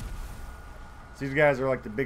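A pickaxe strikes rock with a sharp clang.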